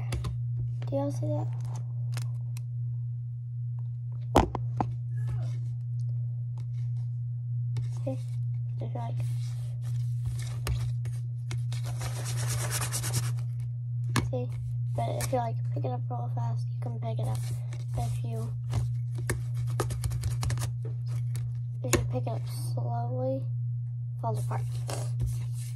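Fingers squish and crinkle soft slime.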